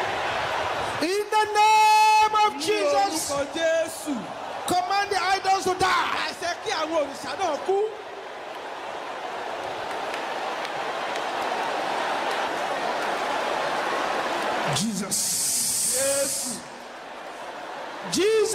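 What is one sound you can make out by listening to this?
A man preaches with fervour into a microphone, heard through loudspeakers.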